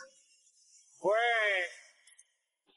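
A man calls out loudly in a drawn-out voice.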